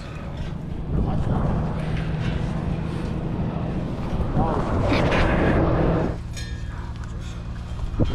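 A metal fence rattles and clanks as someone climbs it.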